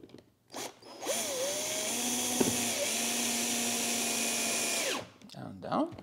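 A cordless drill whirs as it drives a screw.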